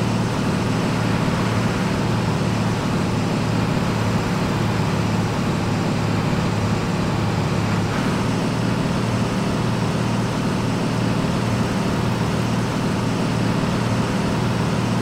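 A heavy truck engine drones steadily as the truck drives along.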